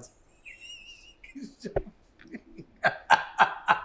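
A woman laughs softly close to a microphone.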